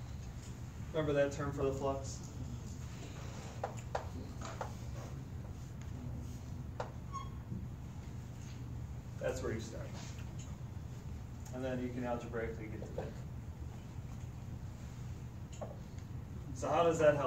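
A middle-aged man speaks calmly, as if lecturing.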